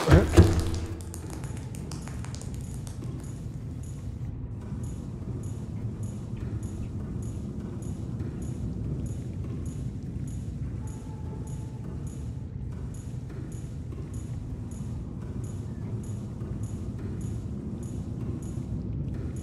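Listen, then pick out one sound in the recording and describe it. Footsteps tap steadily on a metal floor.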